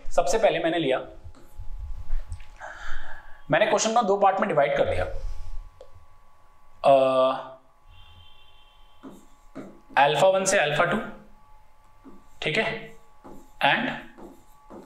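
A man explains calmly into a microphone, in bursts with pauses.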